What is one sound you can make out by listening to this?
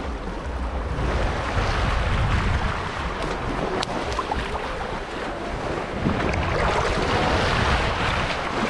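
Shallow water splashes around feet wading.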